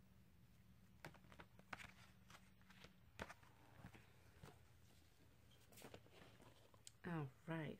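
Paper pages rustle and flap as a booklet is handled.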